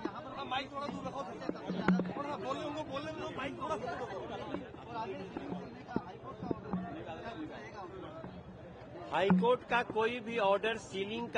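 A man speaks calmly into microphones close by.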